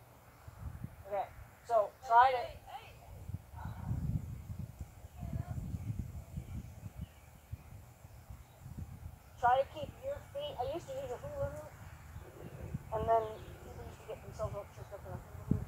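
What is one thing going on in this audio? A young girl talks excitedly nearby.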